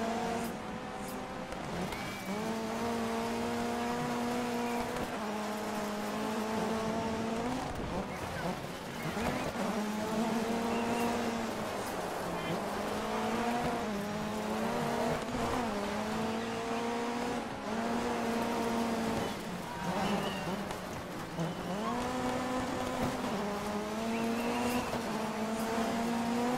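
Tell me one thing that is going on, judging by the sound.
A rally car engine revs hard and shifts gears.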